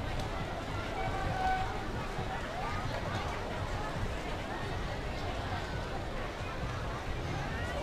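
A large outdoor crowd chatters and murmurs.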